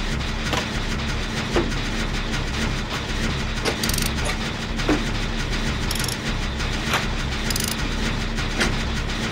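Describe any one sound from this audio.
A generator rattles and clanks while being repaired.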